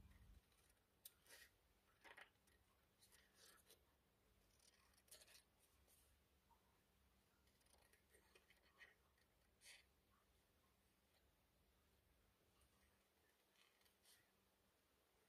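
Scissors snip through paper close by.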